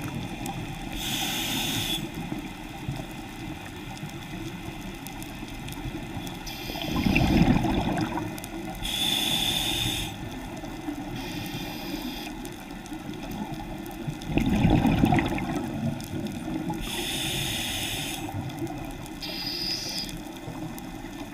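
A diver's breathing regulator hisses with each breath in.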